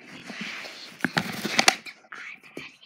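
A tablet knocks and rattles in a young girl's hands.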